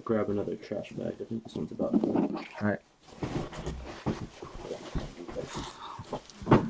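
Trading cards rustle and slap softly as a hand sorts them.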